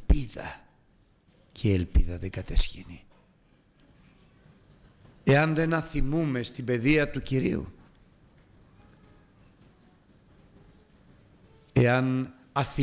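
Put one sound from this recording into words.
A middle-aged man speaks with feeling through a microphone, pausing between phrases.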